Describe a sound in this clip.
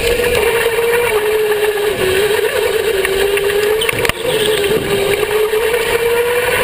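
A go-kart engine whines loudly up close, its pitch wavering as it speeds up and slows down.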